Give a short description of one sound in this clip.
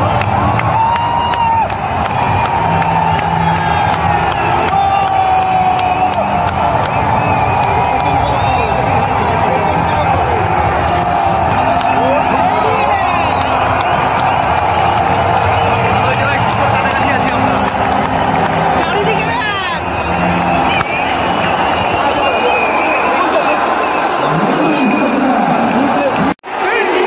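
A huge stadium crowd cheers and roars loudly all around.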